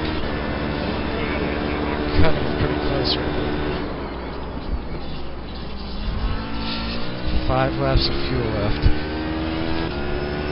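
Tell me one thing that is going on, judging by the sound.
A racing car engine roars and whines, its pitch rising and falling through the gears.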